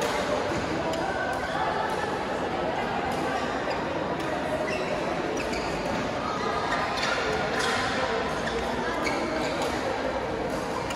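Shuttlecocks are hit with sharp racket pops in a large echoing hall.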